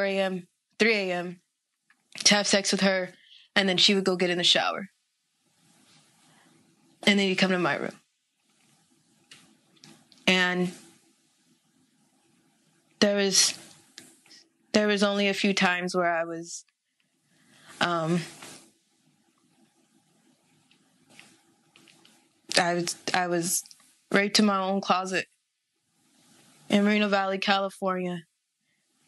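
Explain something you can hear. A young woman speaks calmly and close up, with pauses between phrases.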